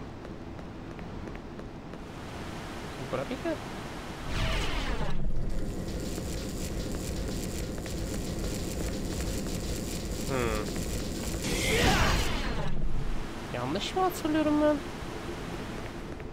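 Footsteps patter on a stone floor.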